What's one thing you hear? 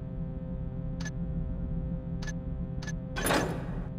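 A soft menu click sounds a few times.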